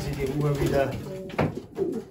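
A pigeon flaps its wings briefly.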